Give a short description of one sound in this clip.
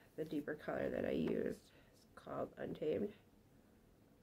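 A woman talks calmly, close to a microphone.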